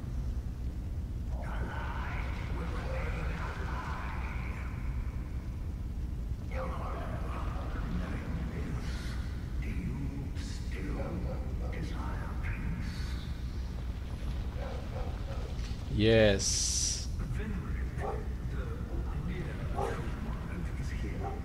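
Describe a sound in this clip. Fire roars with a low steady rumble.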